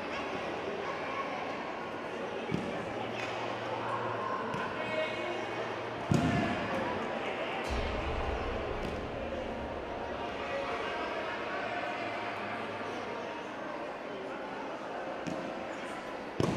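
Children's voices chatter in a large echoing hall.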